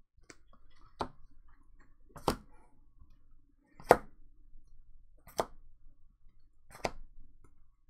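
Hard plastic card cases tap down one by one onto a soft mat.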